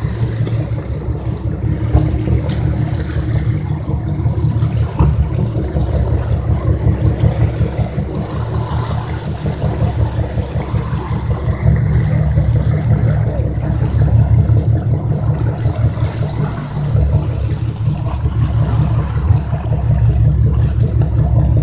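Waves slosh and splash against a moving boat's hull.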